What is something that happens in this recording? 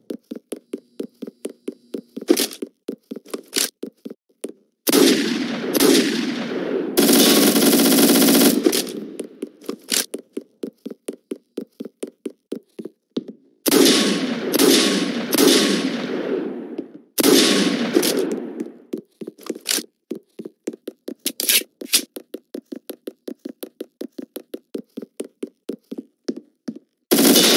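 Quick footsteps patter steadily on hard ground.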